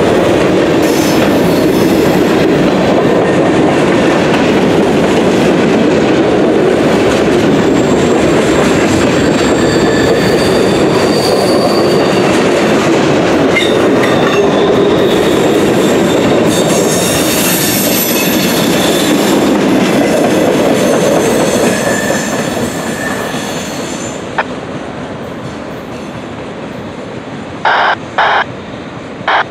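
A freight train rumbles and clatters past close by, then fades into the distance.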